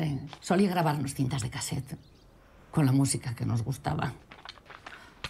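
A young man speaks calmly close by.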